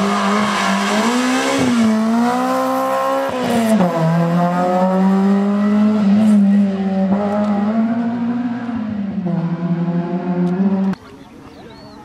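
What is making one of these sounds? A rally car engine roars loudly close by, revving up and down as it speeds away.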